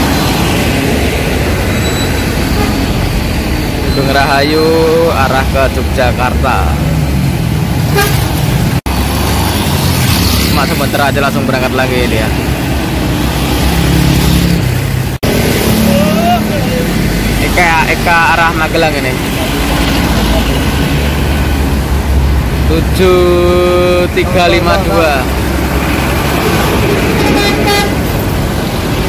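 Cars, buses and motorbikes rumble past on a busy road.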